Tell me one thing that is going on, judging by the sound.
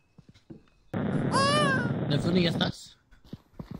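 A baby screams loudly.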